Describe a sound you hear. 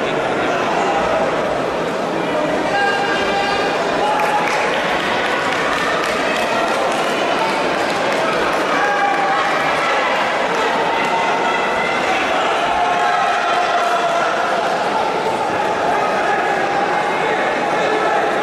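A crowd murmurs and chatters throughout a large echoing hall.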